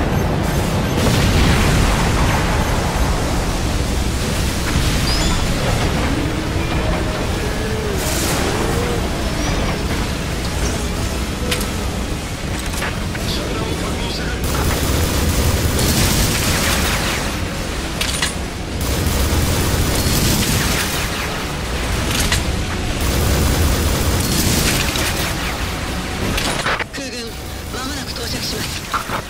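Explosions boom and rumble one after another.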